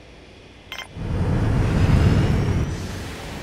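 A spacecraft engine roars low and then slowly fades.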